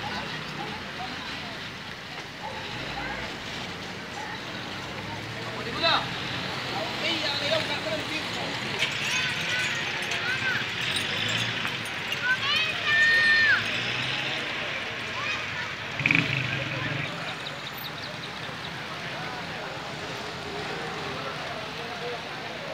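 A crowd of men chatter nearby outdoors.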